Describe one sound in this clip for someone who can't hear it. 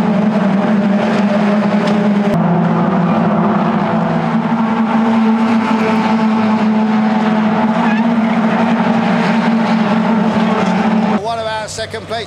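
Racing car engines roar steadily as the cars speed around a track.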